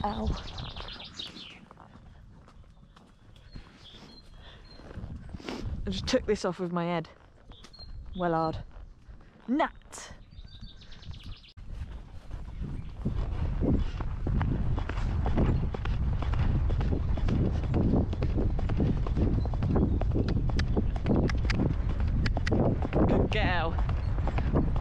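A horse's hooves thud on a muddy path.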